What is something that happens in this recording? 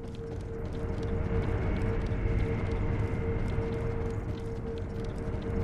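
Footsteps run quickly across wooden floorboards and up wooden stairs.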